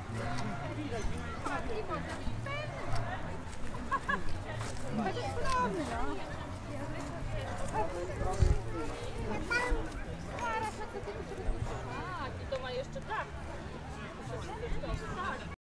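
Children shout and squeal at play in the distance.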